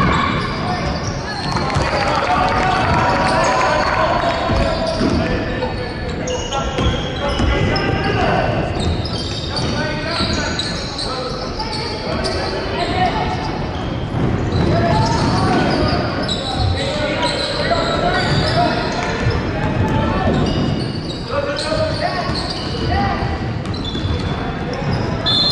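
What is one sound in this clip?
A crowd of spectators chatters loudly in a large echoing hall.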